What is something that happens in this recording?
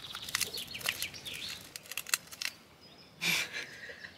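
Foil crinkles and rustles close by.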